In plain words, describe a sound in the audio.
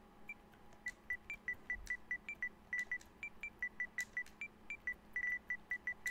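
Short electronic clicks tick quickly as letters are typed.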